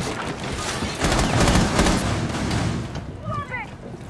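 A loud explosion blasts through a wall, followed by rumbling debris.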